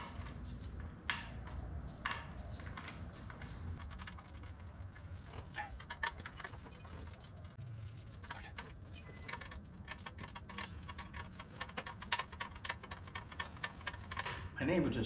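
Metal tools click and tap against a motorcycle wheel.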